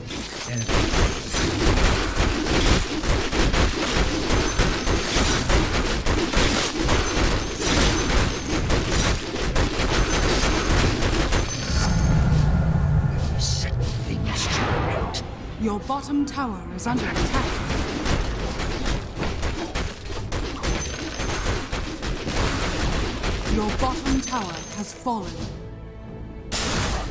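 Game spell effects and weapon hits clash and crackle in a fight.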